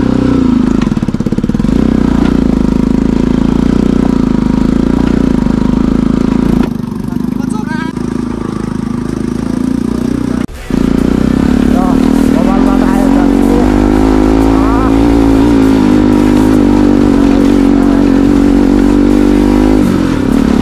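A motorcycle engine hums steadily and changes pitch as the bike rides.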